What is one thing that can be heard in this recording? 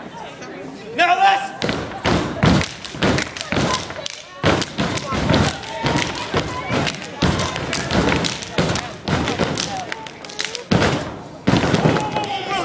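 Dancers stomp and clap in a fast rhythm.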